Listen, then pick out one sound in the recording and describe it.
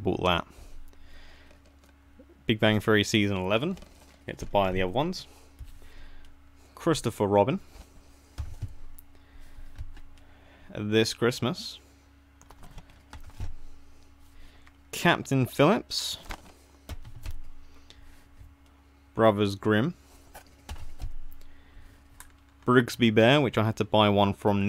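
Plastic cases click and rattle as they are handled.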